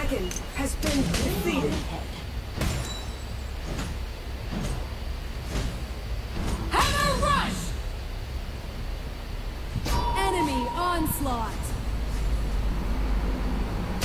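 Game sound effects of hits and spells crack and whoosh.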